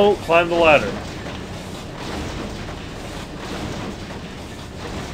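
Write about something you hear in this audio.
Footsteps clank softly on metal ladder rungs.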